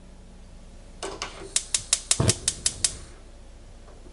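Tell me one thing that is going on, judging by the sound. A gas stove igniter clicks rapidly.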